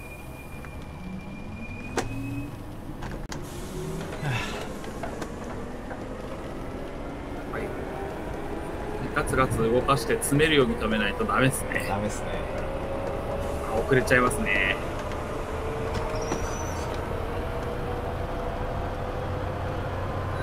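An electric train's motor whines, rising steadily in pitch as the train speeds up.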